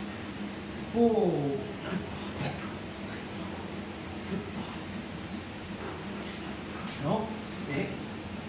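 A small dog gives a short, high whine that falls in pitch.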